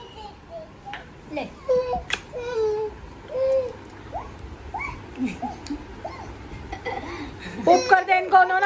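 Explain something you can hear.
A baby babbles and coos close by.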